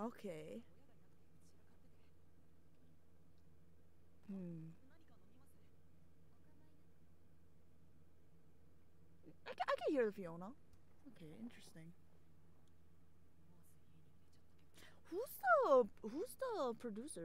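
A young woman speaks in short bursts close to a microphone.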